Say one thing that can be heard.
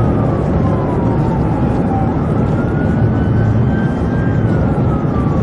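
Tyres roar on asphalt at high speed, heard from inside a car.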